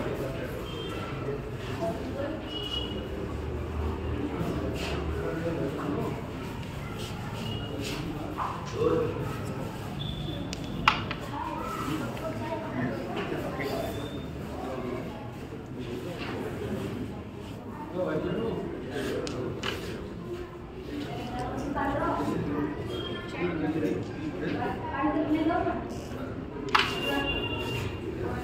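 A crowd of men murmurs and chatters nearby.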